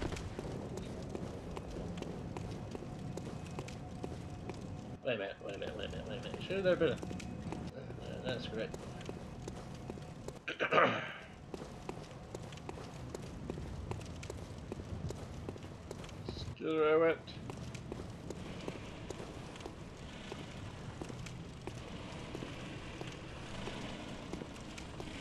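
Footsteps run quickly over stone and gravel.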